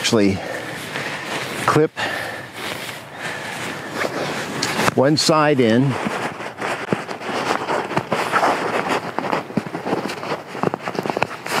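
Nylon fabric rustles and crinkles as a sleeping pad is handled.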